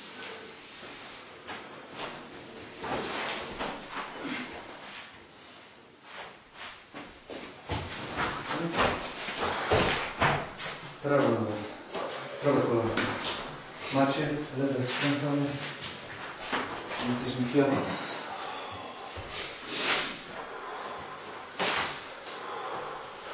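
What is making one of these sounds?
Bodies shift and rustle on floor mats.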